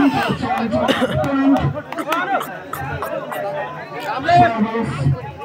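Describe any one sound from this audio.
A crowd of young men shouts and cheers excitedly outdoors.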